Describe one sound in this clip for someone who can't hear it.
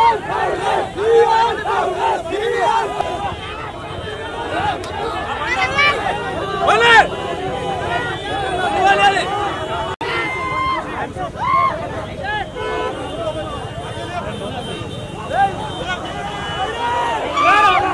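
A large crowd of men cheers and shouts loudly outdoors.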